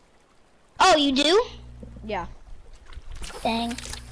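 A fishing lure splashes into water.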